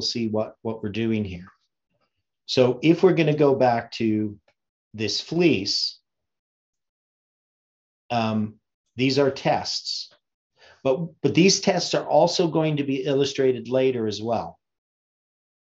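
An elderly man talks calmly and closely into a microphone, with pauses.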